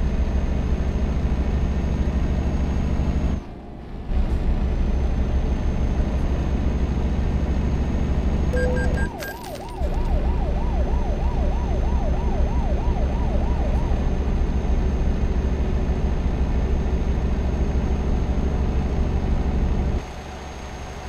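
A diesel truck engine drones, heard from inside the cab.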